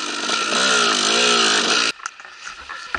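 A dirt bike engine suddenly cuts out.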